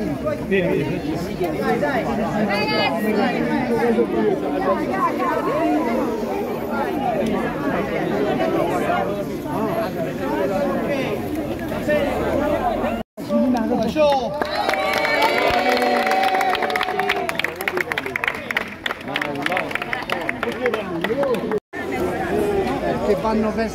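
A crowd of men and women chatter and call out nearby, outdoors.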